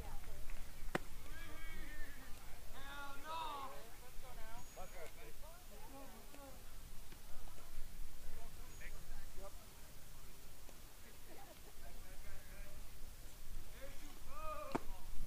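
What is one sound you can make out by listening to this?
A baseball pops sharply into a catcher's mitt.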